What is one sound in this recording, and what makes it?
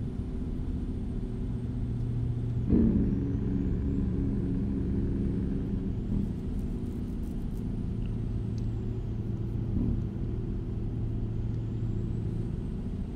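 A truck engine drones steadily while driving on a highway.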